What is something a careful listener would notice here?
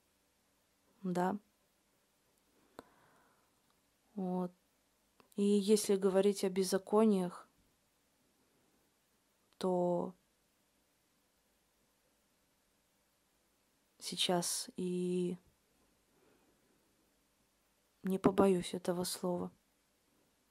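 A young woman speaks calmly and clearly in short phrases, close to a microphone.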